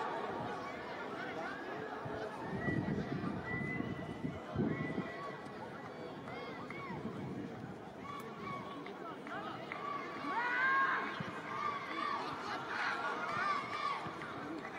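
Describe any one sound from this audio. A large crowd of spectators chatters and calls out in an open stadium.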